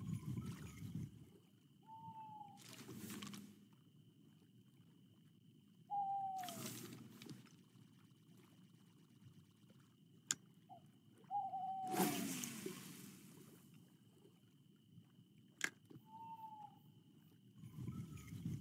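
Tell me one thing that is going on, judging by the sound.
Water laps gently against a boat.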